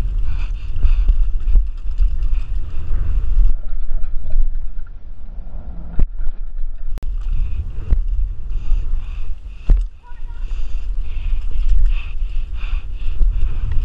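Bicycle tyres roll and crunch over a dirt trail at speed.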